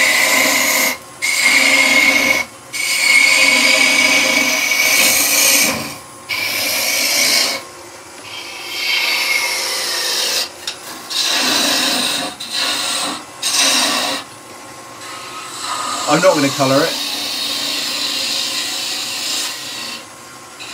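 A wood lathe whirs steadily.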